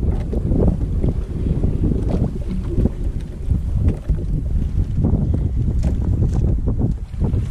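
Water laps against the hull of a small boat.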